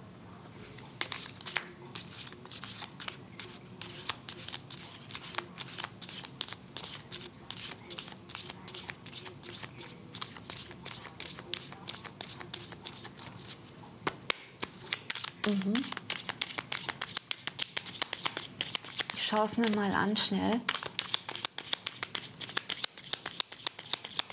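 Playing cards are shuffled with quick crisp riffling clicks.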